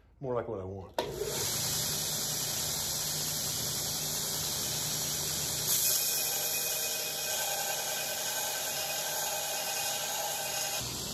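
A belt grinder whirs steadily, grinding metal.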